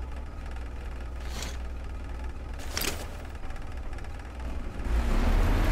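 A low engine rumbles steadily and swells louder near the end.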